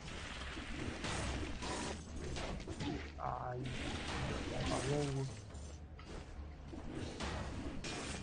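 Explosive bursts crash in a video game fight.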